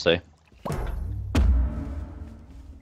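A magic blast bursts with a deep boom.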